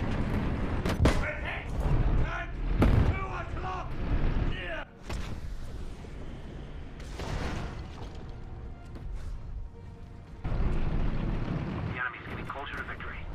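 A tank explodes with a loud boom and crackling fire.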